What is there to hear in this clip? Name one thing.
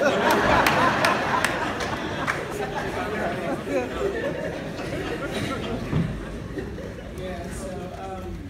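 A woman sings emotionally into a microphone through loudspeakers in an echoing hall.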